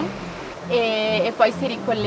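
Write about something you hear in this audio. Water rushes over a small weir.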